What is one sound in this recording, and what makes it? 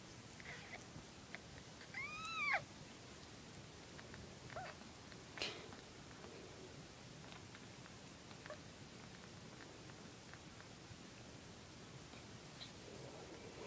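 A cat licks and grooms a kitten with soft wet sounds.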